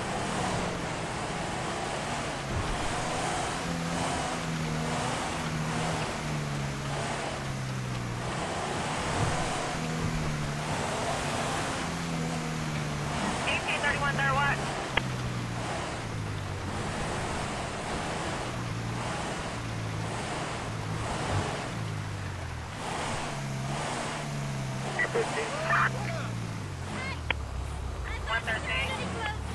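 A car engine hums and rises and falls in pitch as it drives.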